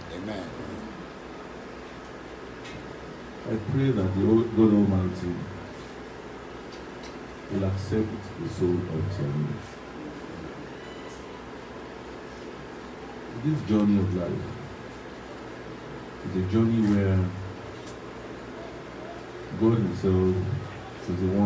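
A man speaks calmly into a microphone in short bursts with pauses.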